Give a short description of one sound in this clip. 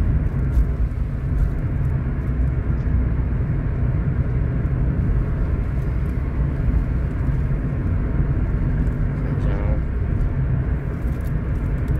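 A car drives along a road with a steady low rumble from inside the car.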